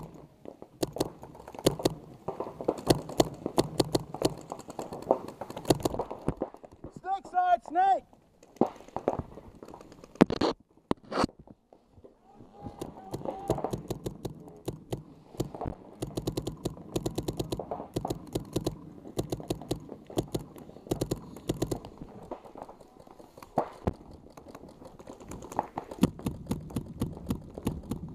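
Paintball guns fire in rapid popping bursts close by.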